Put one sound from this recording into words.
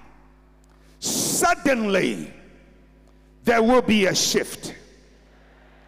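A man speaks with feeling into a microphone in a large echoing hall.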